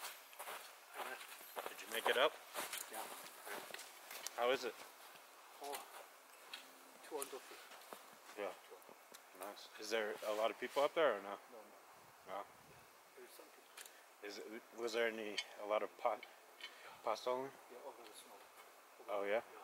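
A man talks calmly outdoors, close by.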